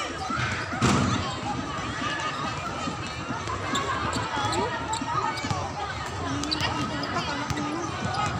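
A volleyball thuds on a hard court.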